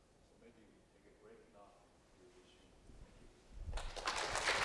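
A man speaks at a distance in a large hall.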